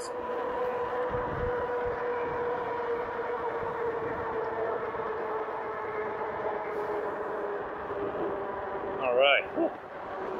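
An electric bike motor whines steadily.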